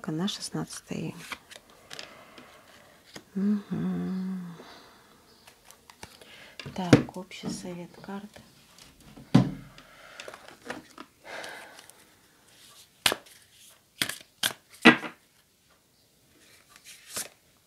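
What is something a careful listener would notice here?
Cards flick and rustle as they are shuffled by hand.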